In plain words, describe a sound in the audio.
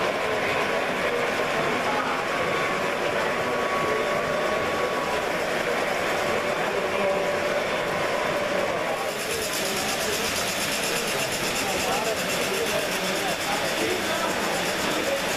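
Model train cars rumble and clatter along metal tracks.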